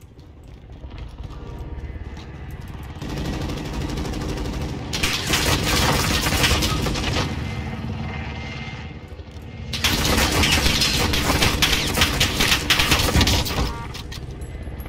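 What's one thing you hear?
A helicopter's rotor thuds loudly overhead.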